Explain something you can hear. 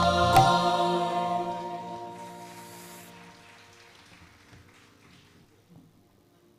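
A group of singers ends a song on a long held chord that fades away in a large hall.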